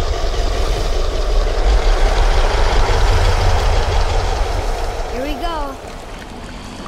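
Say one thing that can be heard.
An oar splashes and swishes through water as a boat is rowed.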